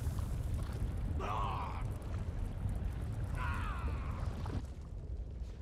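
Lava rumbles and bubbles with a deep, steady roar.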